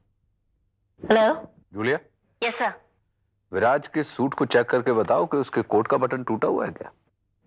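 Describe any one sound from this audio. A young man talks into a phone, close by, with animation.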